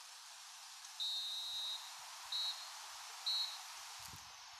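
A referee's whistle blows three times, the last two short.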